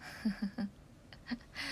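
A young woman laughs softly, close to a phone microphone.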